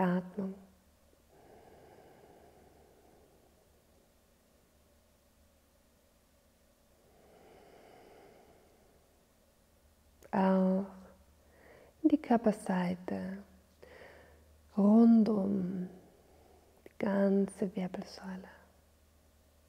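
A woman speaks softly and calmly, close to a microphone.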